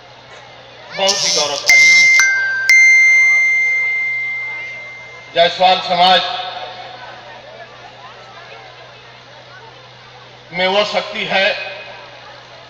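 An elderly man speaks forcefully into a microphone, heard through loudspeakers in short bursts.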